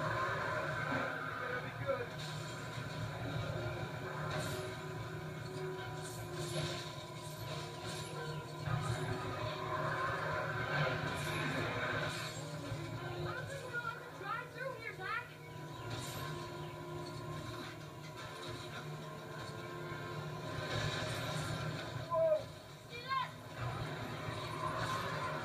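Video game sound effects chirp and thump from a television speaker.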